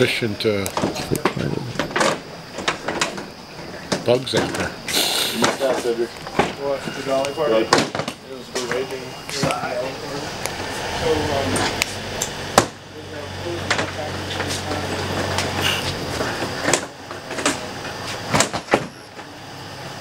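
A hot stage lamp crackles and pops.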